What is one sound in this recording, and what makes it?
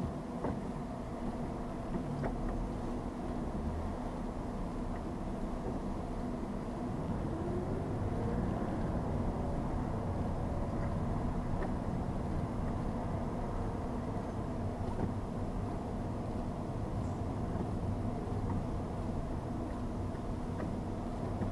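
A car engine hums and tyres roll steadily on the road, heard from inside the car.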